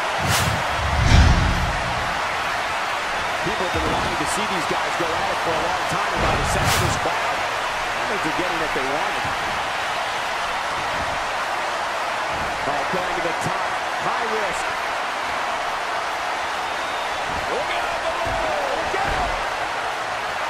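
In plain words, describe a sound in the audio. Wrestlers' bodies slam heavily onto the ring mat.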